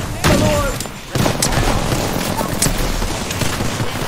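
An explosion bursts and flames roar.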